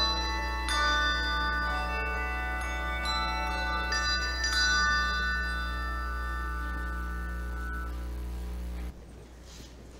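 Handbells ring out in a slow melody.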